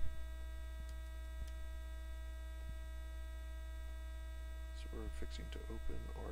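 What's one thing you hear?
A hand softly shuffles and slides playing cards.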